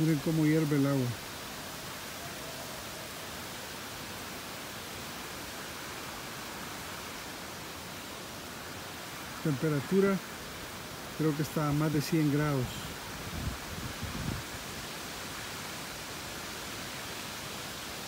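Water flows and rushes steadily.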